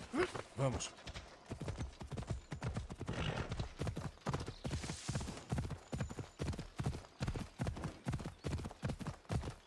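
Horse hooves gallop steadily over grassy ground.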